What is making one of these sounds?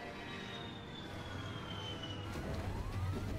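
A jet engine roars as an aircraft flies past.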